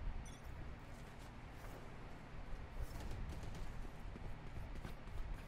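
Footsteps thud softly on hard ground.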